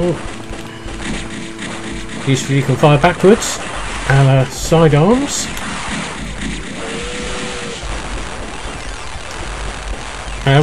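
Chiptune game music plays steadily.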